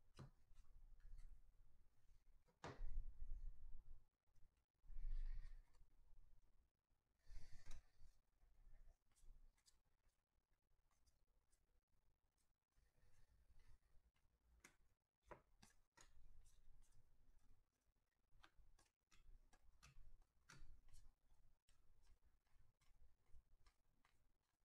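Trading cards shuffle and flick softly between hands, close by.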